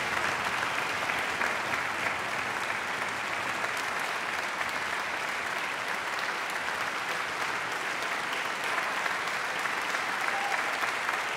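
Many people applaud steadily in a large echoing hall.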